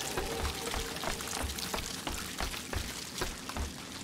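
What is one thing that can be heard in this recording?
Feet clatter on a wooden ladder rung by rung.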